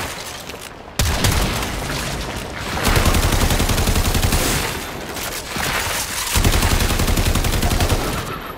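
Gunfire from a game weapon bursts in rapid volleys.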